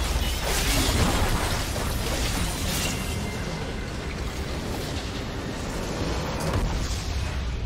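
Spell effects crackle and whoosh in a busy battle.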